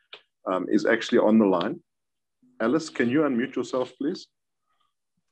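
A middle-aged man speaks calmly over an online call.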